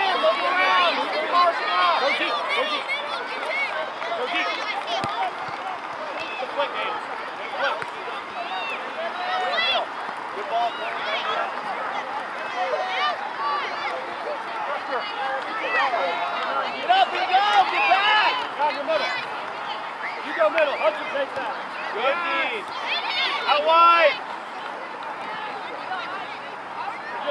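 A crowd of spectators cheers and shouts from the sidelines outdoors.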